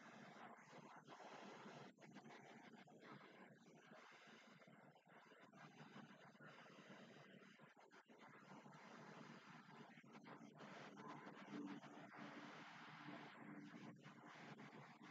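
A young woman makes muffled sounds close to a microphone.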